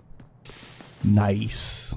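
Light footsteps tap quickly on stone steps.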